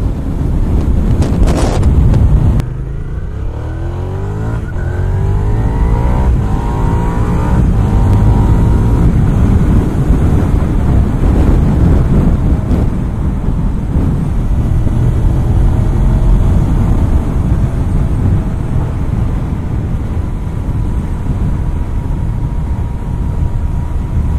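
A motorcycle engine revs up and down through the gears while riding.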